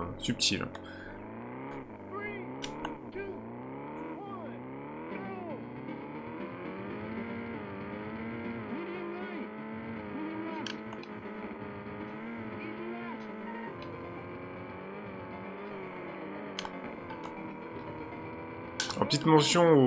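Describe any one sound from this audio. A video game car engine revs and roars, rising and falling in pitch.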